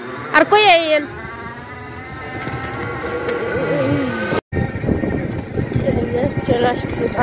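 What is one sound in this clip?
A motorbike engine hums steadily while riding along.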